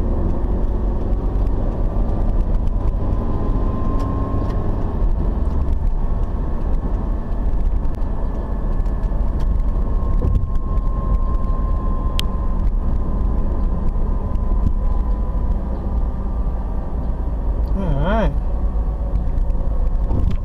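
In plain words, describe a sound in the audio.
A car drives along an asphalt road, with engine and road rumble heard from inside.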